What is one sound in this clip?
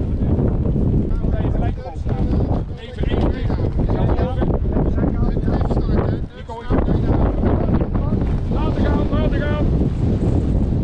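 A man talks nearby, raised over the wind.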